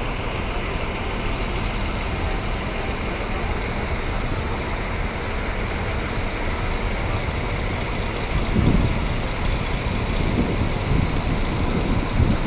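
A bus engine idles with a low, steady rumble nearby.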